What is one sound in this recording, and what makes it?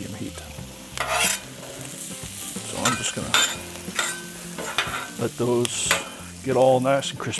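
A metal spatula scrapes and clacks on a hot griddle.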